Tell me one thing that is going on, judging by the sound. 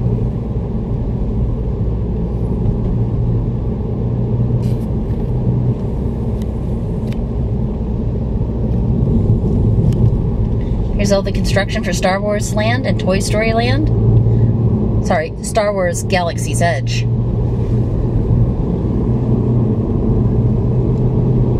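Tyres rumble steadily on smooth pavement.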